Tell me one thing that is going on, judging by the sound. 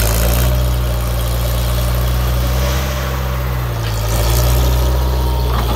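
A skid steer loader's diesel engine rumbles loudly close by.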